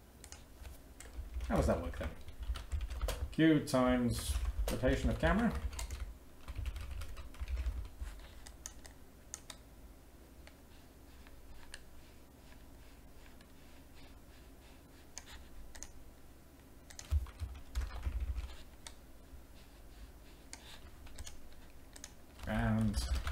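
Keyboard keys click as someone types.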